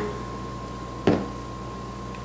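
A plastic bottle is set down on a table with a knock.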